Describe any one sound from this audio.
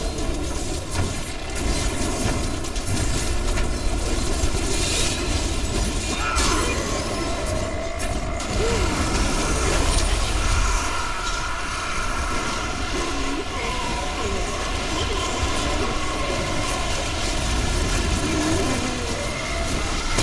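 Magic blasts and fighting sounds crash and clash from a video game.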